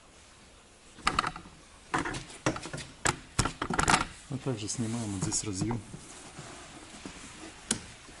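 Plastic parts click and knock as hands work on a car door.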